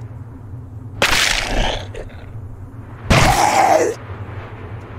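Heavy blows thud against a body.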